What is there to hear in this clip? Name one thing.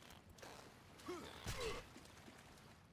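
A blade swings and strikes a creature.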